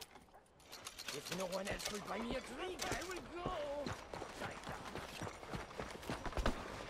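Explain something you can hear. A man speaks with animation outdoors.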